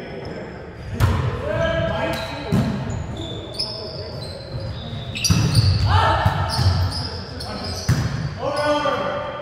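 Young men shout and call out in a large echoing gym.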